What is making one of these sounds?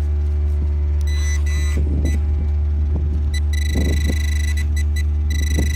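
A handheld metal detector beeps in short high bursts.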